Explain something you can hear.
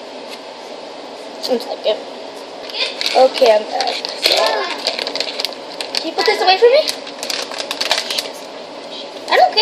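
A plastic food bag crinkles and rustles in hands.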